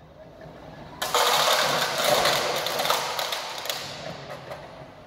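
Small metal pieces clink as they snap onto a magnetic sweeper.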